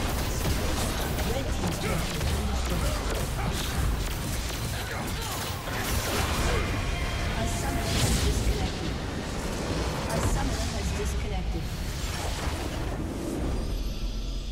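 Game spell effects and blows clash rapidly in a busy battle.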